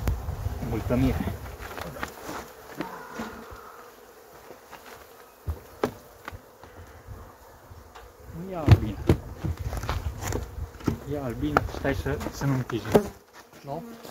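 Wooden hive frames knock and scrape as they are lifted.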